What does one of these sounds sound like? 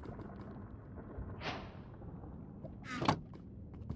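A wooden chest creaks shut.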